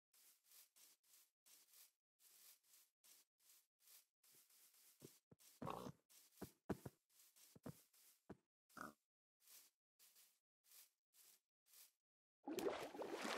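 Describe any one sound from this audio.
Footsteps crunch quickly and steadily over grass.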